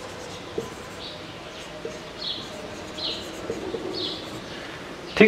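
A marker squeaks as it writes on a whiteboard.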